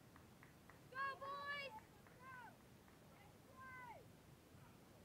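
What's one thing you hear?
Young players shout and call out from across a field outdoors.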